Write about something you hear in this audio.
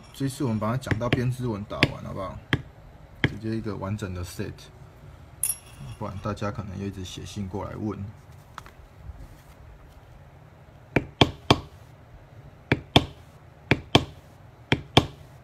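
A mallet taps sharply on a leather stamping tool.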